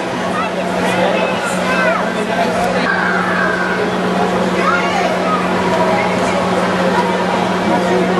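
Children talk and call out nearby.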